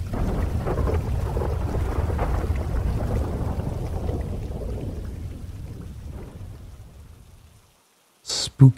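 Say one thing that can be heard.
A small campfire crackles softly.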